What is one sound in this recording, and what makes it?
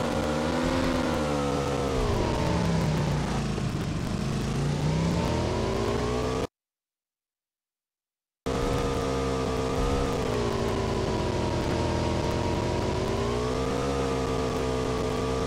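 A motorbike engine drones, revving up and down.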